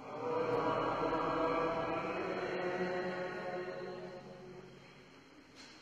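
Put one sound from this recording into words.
A man sings a slow chant that rings through a large echoing hall.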